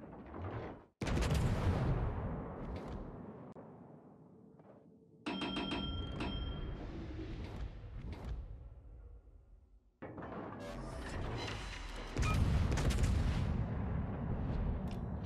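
Naval guns boom.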